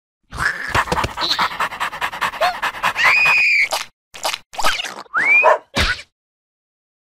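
A small cartoon creature squeaks and babbles in a high voice.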